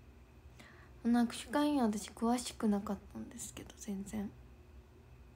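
A young woman speaks briefly and softly, close by.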